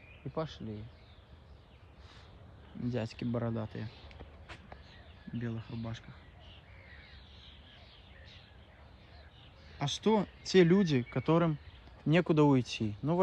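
A middle-aged woman speaks calmly close by.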